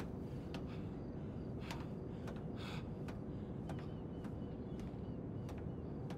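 Soft footsteps clank on a metal walkway.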